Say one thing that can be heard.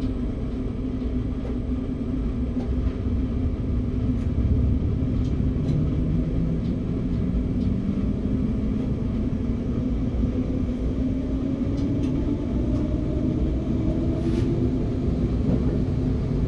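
A train's wheels rumble and clatter along the rails.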